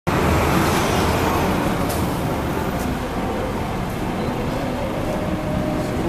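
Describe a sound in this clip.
Cars drive by slowly on the street below.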